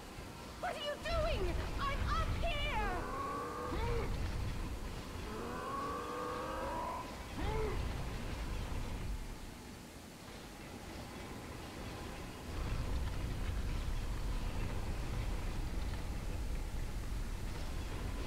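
A heavy stone pillar scrapes and grinds across a stone floor.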